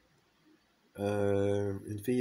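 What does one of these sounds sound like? A man sings a long held note close up.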